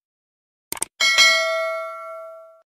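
A small bell rings brightly and slowly fades.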